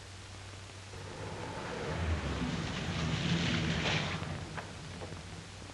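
A car engine rumbles as a car pulls up and stops.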